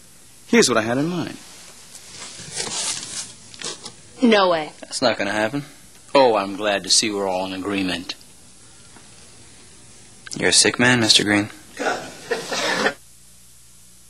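A young man talks in a conversation, close by.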